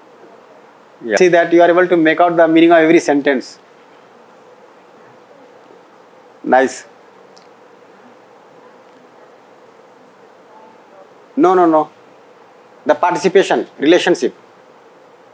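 A man speaks calmly in short bursts with long pauses, in a large room.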